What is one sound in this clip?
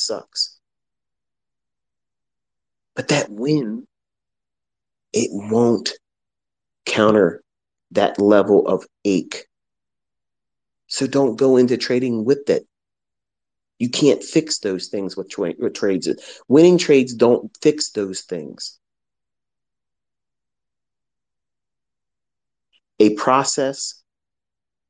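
A man speaks calmly and closely into a microphone, in short phrases with pauses.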